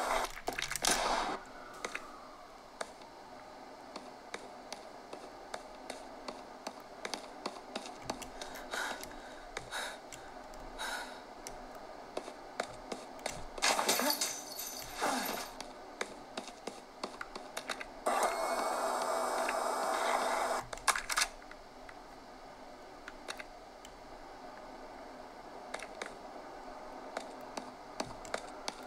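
Buttons and thumbsticks on a handheld console click softly.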